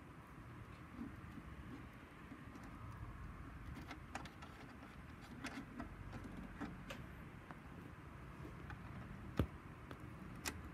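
Fingers twist speaker wire into metal binding posts with small clicks and scrapes.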